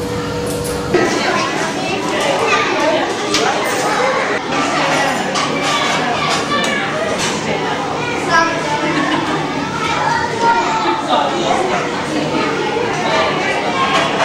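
Several women chat nearby.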